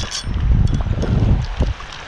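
A fishing reel winds with a ratcheting clicking.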